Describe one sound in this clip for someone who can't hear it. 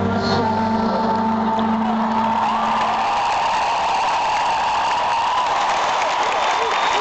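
Live music plays loudly through large loudspeakers.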